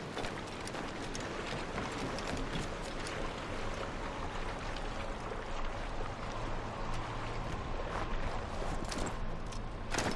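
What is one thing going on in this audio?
Footsteps run quickly over wooden boards and then snowy ground.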